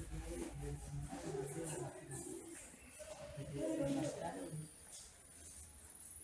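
People talk quietly nearby.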